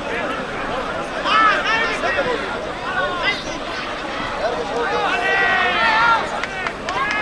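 A large outdoor crowd shouts and cheers excitedly.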